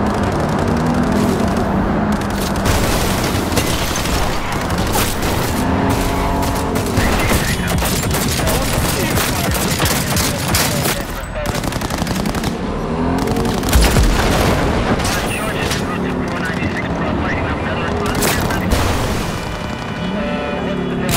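A police siren wails in rising and falling sweeps.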